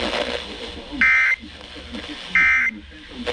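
A radio beeps loudly as a button is pressed.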